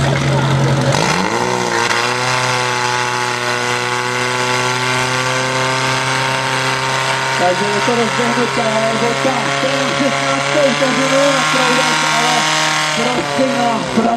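A pump engine revs up sharply and keeps running at high speed.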